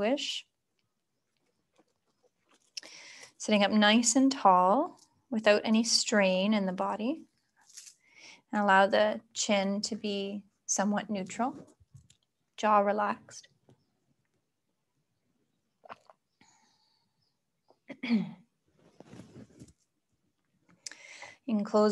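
A young woman speaks calmly and softly close by.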